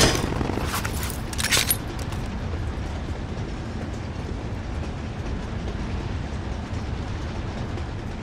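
Footsteps thud steadily on soft ground.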